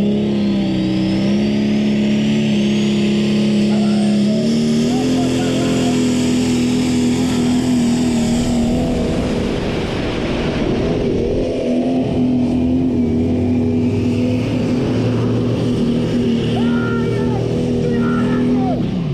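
A tractor engine roars loudly under heavy strain, its pitch shifting as it pulls.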